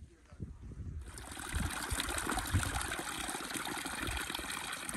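Water trickles steadily into a muddy hole.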